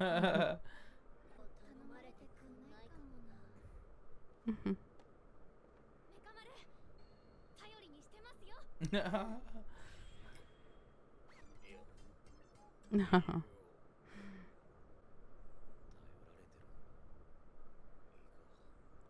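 A young woman laughs softly close to a microphone.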